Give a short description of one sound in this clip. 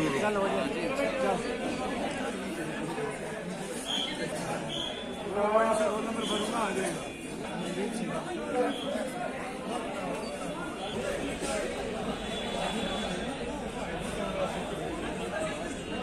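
A crowd of men chatters nearby throughout.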